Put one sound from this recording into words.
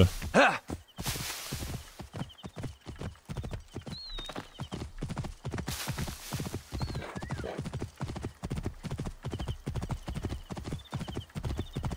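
A horse's hooves clop steadily at a trot.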